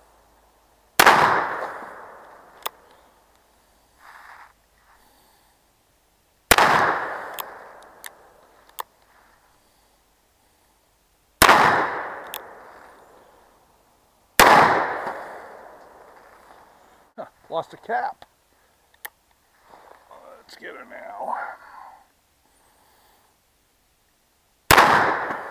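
A revolver fires loud shots outdoors, each one echoing away.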